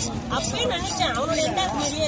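A knife blade knocks against a wooden block.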